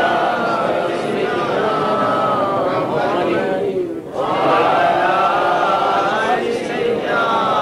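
An elderly man speaks forcefully through a microphone and loudspeakers.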